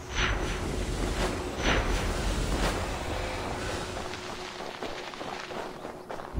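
Hands scrape against rock while climbing.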